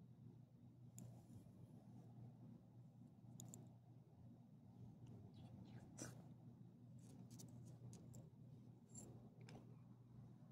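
A metal tag on a dog's collar jingles faintly.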